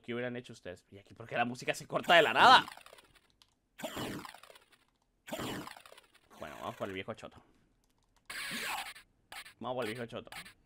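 Short electronic game sounds chirp as a character jumps.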